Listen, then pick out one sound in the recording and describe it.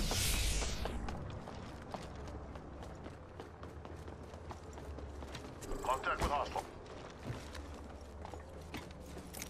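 Footsteps run quickly on a hard surface.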